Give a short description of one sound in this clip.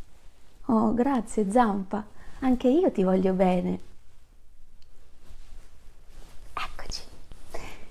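A woman speaks close up in a cheerful, lively voice.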